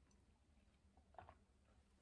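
A woman sips a drink from a glass.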